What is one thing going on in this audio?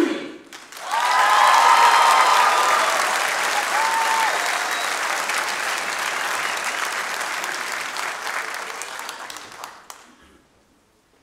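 A large group of young men and women chant and sing loudly together.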